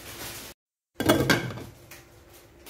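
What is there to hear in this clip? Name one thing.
A metal lid clinks onto a pot.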